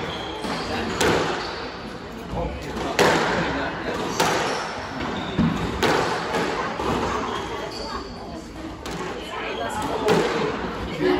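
Squash racquets strike a ball with sharp cracks in an echoing court.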